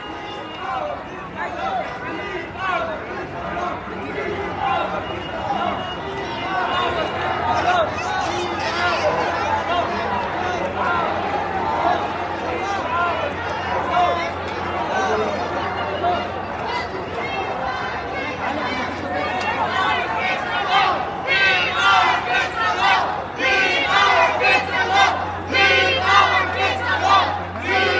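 A large crowd of men and women murmurs and chatters close by, outdoors.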